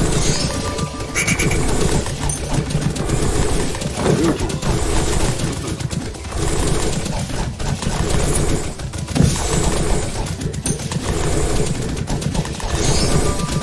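Rapid game sound effects of shots and hits crackle on and on.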